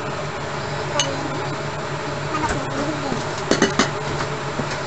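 Raw meat slides into a hot pan with a clatter.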